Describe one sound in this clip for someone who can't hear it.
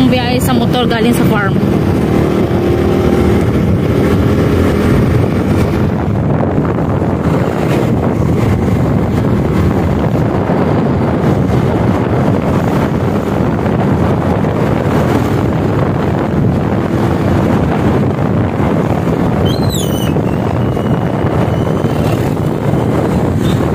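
Loud wind rushes past as a motorcycle rides along a road.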